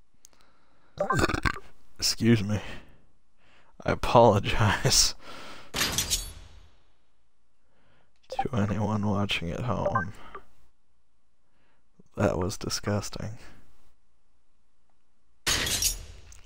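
A man talks in bursts, close to a microphone.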